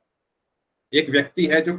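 A young man speaks through a microphone on an online call.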